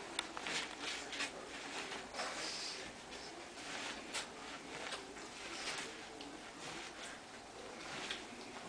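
A paper booklet rustles and crinkles as a dog noses it.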